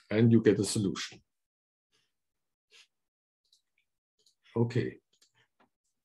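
A middle-aged man speaks calmly in short bursts through an online call.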